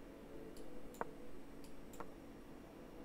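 A chess piece clicks sharply onto a board.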